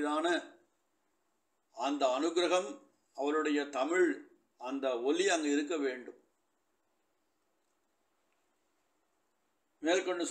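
A man speaks in a slow, measured voice through a microphone, with pauses between phrases.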